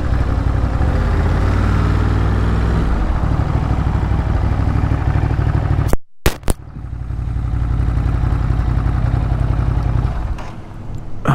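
A motorcycle engine idles with a low, steady rumble close by.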